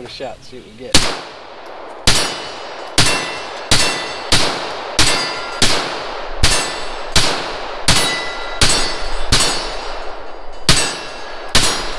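Gunshots crack loudly and echo outdoors, one after another at a steady pace.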